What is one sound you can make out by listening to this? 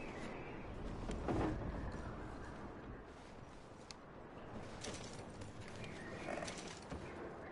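A wooden drawer slides open and shut.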